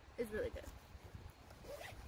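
A zipper rasps open on a small pouch.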